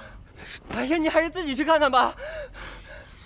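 A young man speaks cheerfully, close by.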